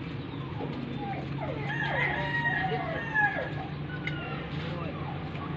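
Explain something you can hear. A man speaks commands to a dog nearby.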